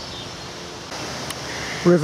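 A small stream rushes and gurgles over stones.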